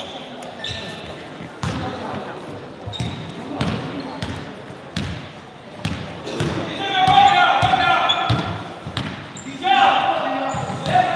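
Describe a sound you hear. Young men call out to each other across the hall.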